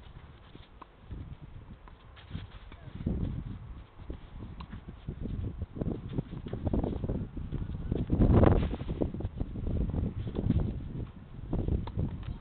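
A tennis ball is struck with a racket at intervals.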